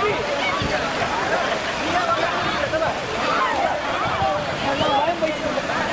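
Water splashes down slides into a pool.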